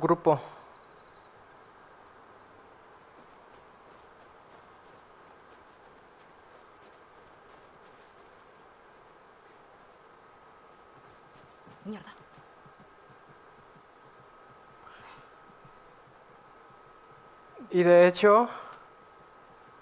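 A young woman speaks briefly and with animation into a microphone.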